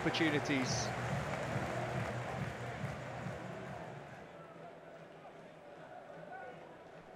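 A large stadium crowd murmurs and chatters in a wide open space.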